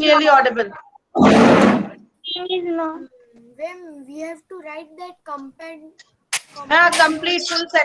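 A young boy speaks through an online call.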